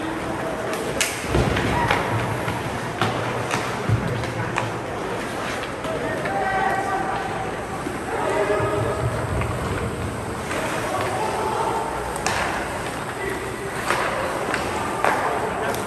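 Hockey sticks clack against a puck with sharp knocks.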